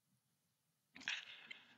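A young man laughs softly over an online call.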